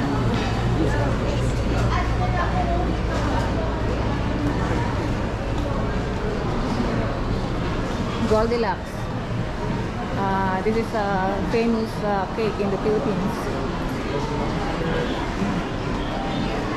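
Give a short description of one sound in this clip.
Many people chatter and murmur in a large echoing indoor space.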